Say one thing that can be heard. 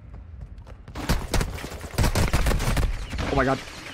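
Rapid gunfire bursts from a game, loud and sharp.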